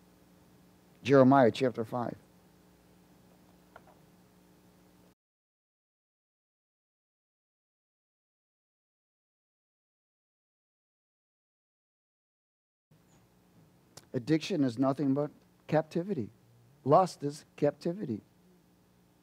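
A man speaks through a microphone in a calm, preaching voice.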